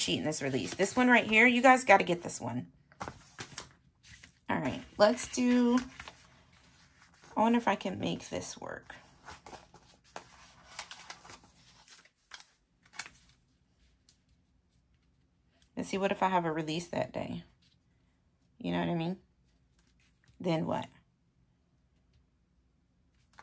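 Sheets of sticker paper rustle as they are handled.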